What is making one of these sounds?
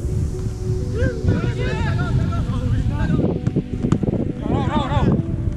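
Young men shout to each other from a distance.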